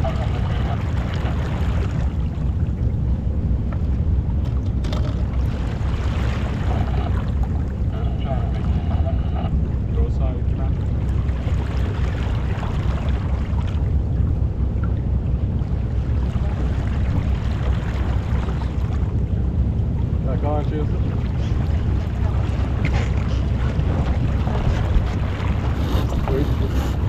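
Wind roars steadily across the microphone outdoors.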